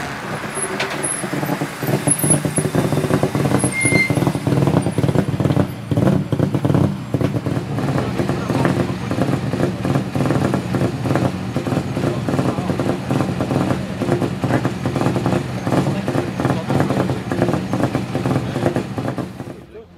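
A rally car engine idles loudly with a rough, burbling rumble nearby.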